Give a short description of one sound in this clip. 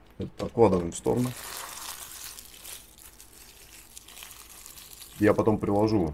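Plastic wrap crinkles as it is crumpled by hand.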